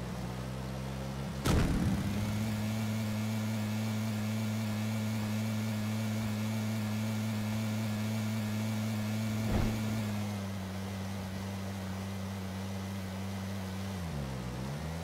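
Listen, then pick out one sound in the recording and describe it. A buggy engine roars steadily at high speed.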